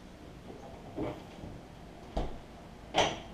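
A cabinet door clicks open.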